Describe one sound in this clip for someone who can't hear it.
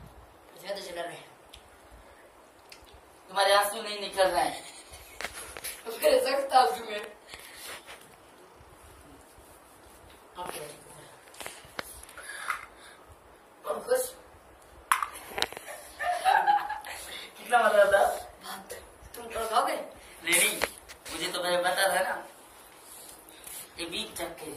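A boy talks and laughs close by.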